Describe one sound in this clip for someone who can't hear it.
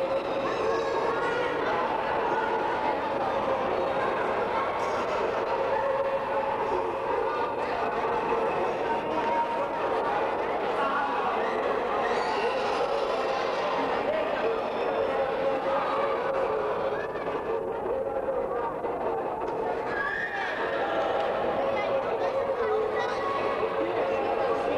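A crowd of people chatters loudly in a large echoing hall.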